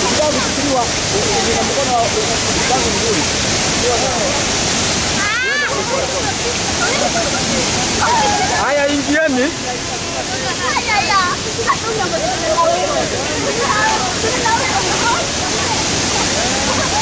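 A stream rushes and splashes over rocks outdoors.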